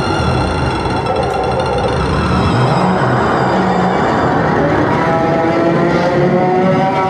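Electronic music with droning tones plays loudly through loudspeakers.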